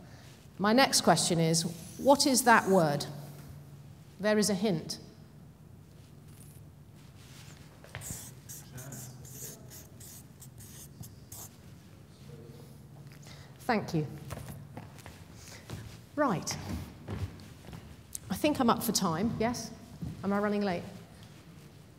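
A woman speaks with animation into a microphone in a large, echoing hall.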